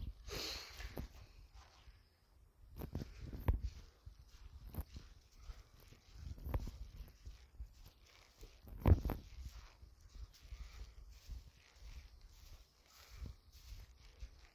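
Footsteps crunch and rustle on dry straw.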